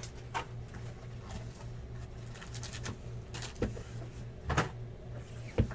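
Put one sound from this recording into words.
Cards rustle and tap on a table.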